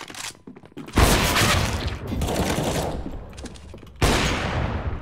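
A sniper rifle fires loud sharp shots.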